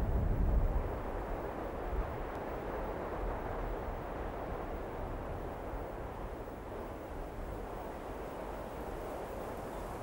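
A vehicle engine rumbles in the distance.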